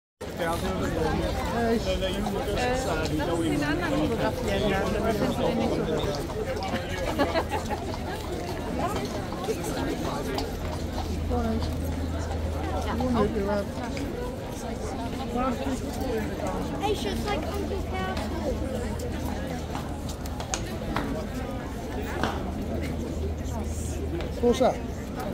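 A large outdoor crowd chatters all around.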